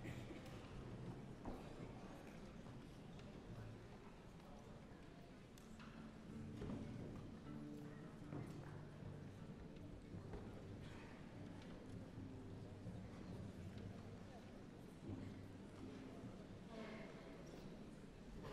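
A large orchestra plays in an echoing concert hall.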